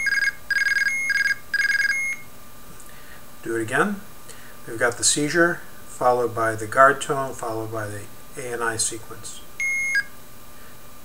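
An electronic keypad beeps as buttons are pressed.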